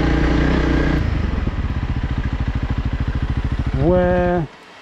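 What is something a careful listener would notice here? A motorcycle engine idles with a steady putter.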